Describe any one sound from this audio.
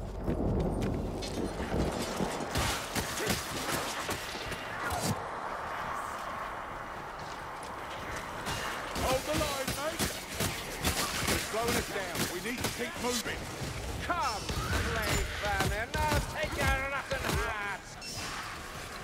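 Weapons hack and slash against enemies in rapid blows.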